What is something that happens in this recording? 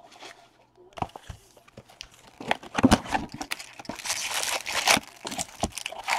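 Plastic wrapping crinkles and tears.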